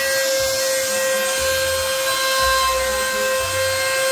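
Stepper motors buzz as a machine's gantry moves.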